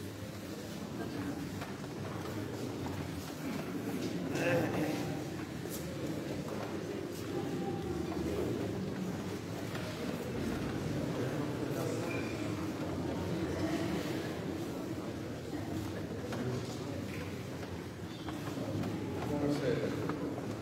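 A male choir sings in close harmony in a large echoing hall.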